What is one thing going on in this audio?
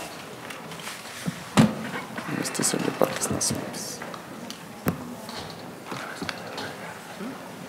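Several men and women talk quietly around a large room.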